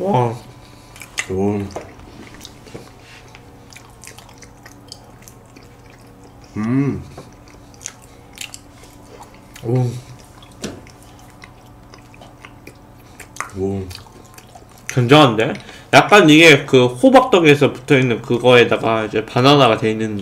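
Food is chewed wetly close to a microphone.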